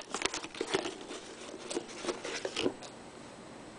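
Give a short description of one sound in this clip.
A snack container rattles and crinkles in a hand close by.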